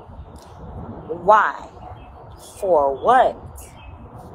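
A young woman speaks loudly and with emphasis close to a phone microphone.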